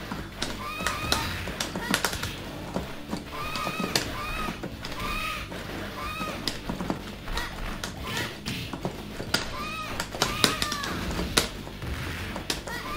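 Punches and kicks land with sharp thuds in a fighting game.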